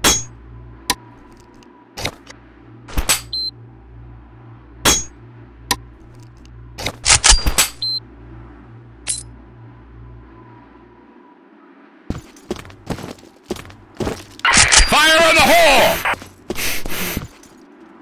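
Metallic clicks sound as a weapon is switched and handled.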